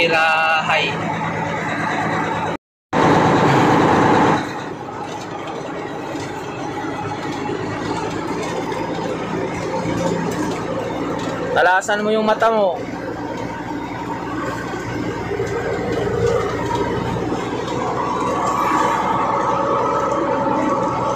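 A truck engine hums steadily inside the cab.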